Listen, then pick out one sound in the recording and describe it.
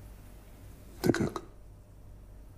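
A man asks a short question in a low, quiet voice.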